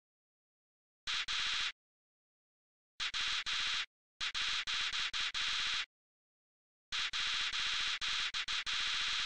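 Rapid high electronic blips chatter in short bursts.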